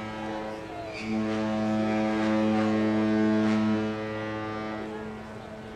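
A ship's horn blasts loudly and deeply.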